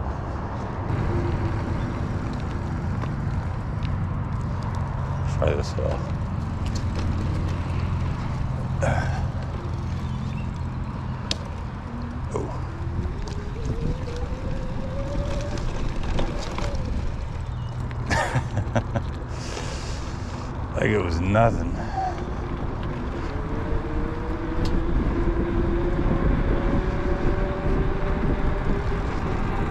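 Wind buffets past the rider outdoors.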